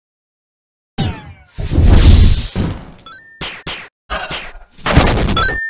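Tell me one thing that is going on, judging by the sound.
Game attack effects whoosh and blast in loud bursts.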